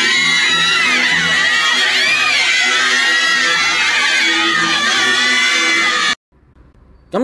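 A crowd of young women cheers and shouts excitedly, close by.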